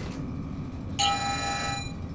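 A heavy metal lever clunks as it is pulled.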